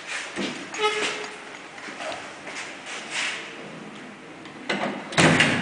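Lift doors slide shut.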